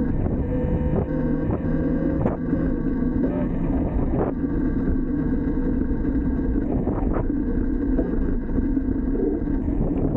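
A young man speaks over the wind.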